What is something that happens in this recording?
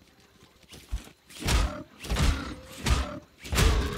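A robot creature growls and clanks nearby.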